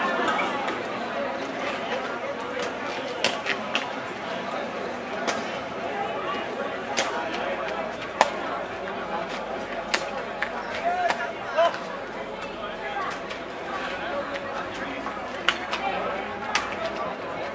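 A crowd of onlookers chatters outdoors.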